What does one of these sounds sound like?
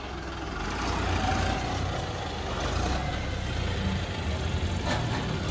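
A diesel tractor engine rumbles steadily close by.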